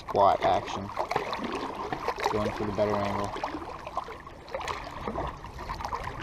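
A fishing reel whirs and clicks as it is wound in.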